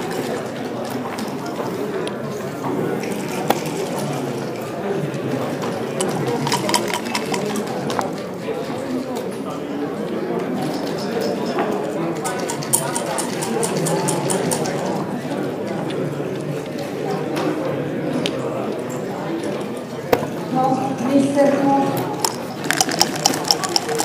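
Plastic game pieces click and slide on a wooden board.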